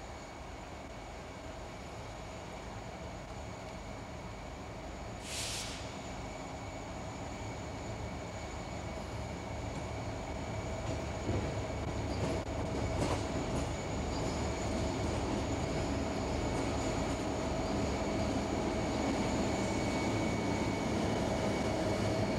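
A diesel locomotive engine rumbles as it approaches and grows louder.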